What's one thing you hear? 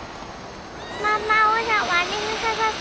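A little girl speaks in a high, eager voice.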